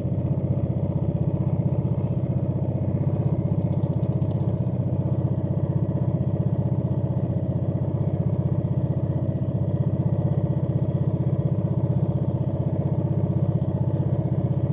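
Water laps and swishes against a moving boat's hull.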